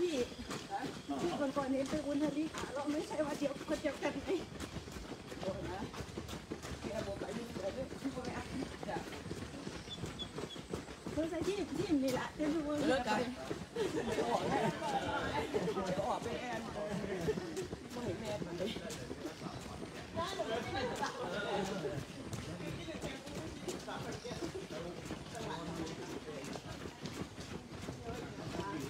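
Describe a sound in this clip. Footsteps of a group of runners patter on pavement outdoors.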